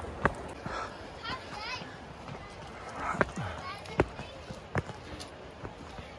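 Footsteps thud on stone steps close by.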